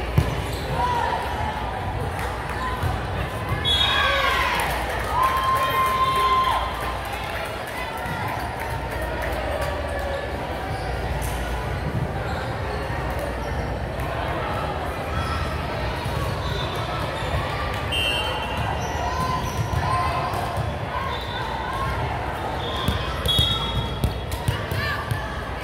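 Young women call out and chatter in a large echoing gym.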